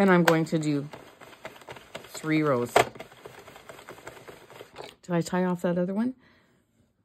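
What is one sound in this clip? A hand-cranked knitting machine clicks and rattles as its needles move.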